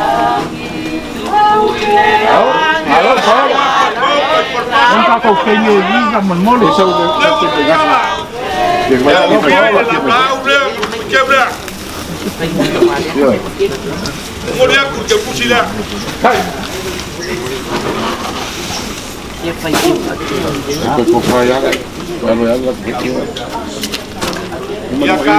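An elderly man speaks loudly into a microphone, heard through a loudspeaker outdoors.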